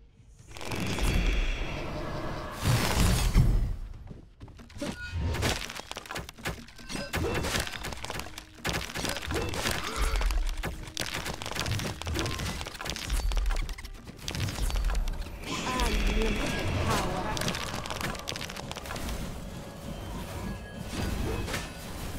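Laser beams zap and crackle in quick bursts.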